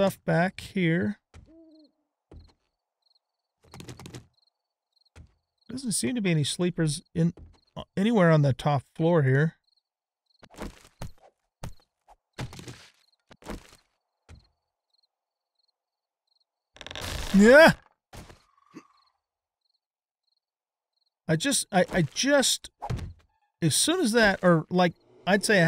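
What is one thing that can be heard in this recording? A middle-aged man talks casually into a microphone, in short bursts.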